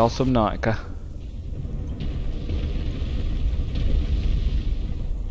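Muffled underwater ambience rumbles low and steady.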